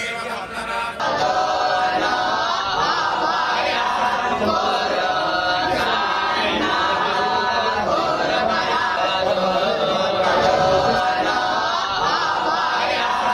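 A group of boys chant together loudly, close by.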